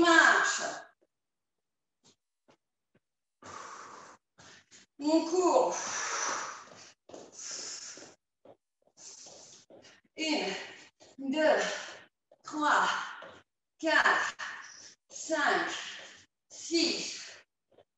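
A woman speaks with energy, slightly out of breath, through a microphone.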